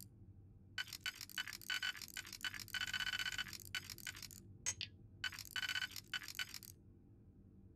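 Rings of a digital lock whir and click rapidly as they turn.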